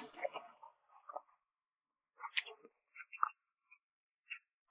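A young woman chews and bites food close to a microphone.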